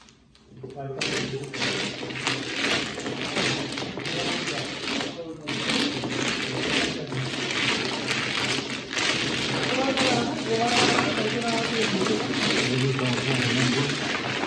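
Tiles clatter loudly as they are shuffled by hand.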